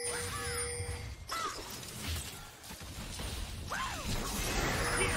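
Game spell effects whoosh and chime.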